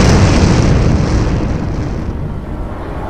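An explosion roars and rumbles.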